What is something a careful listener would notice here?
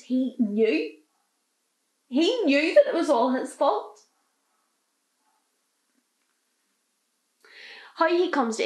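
A young woman speaks close by, in an upset, tearful voice.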